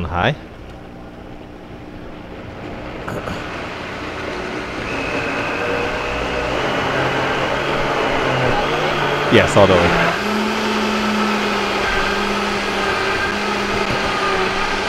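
A blender whirs loudly and steadily, growing stronger.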